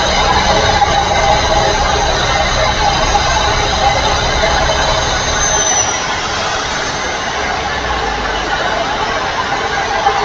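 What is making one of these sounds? Tyres roll on the road with a steady rushing noise.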